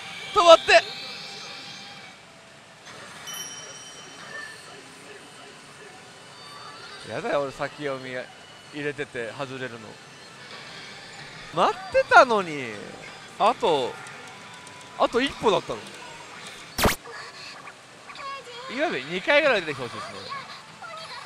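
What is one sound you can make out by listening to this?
A pachinko machine plays electronic jingles and effects.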